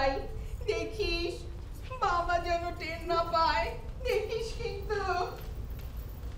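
A woman speaks loudly with animation in a hall.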